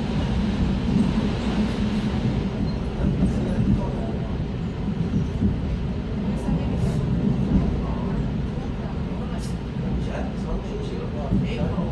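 An electric commuter train rumbles along the tracks, heard from inside a carriage.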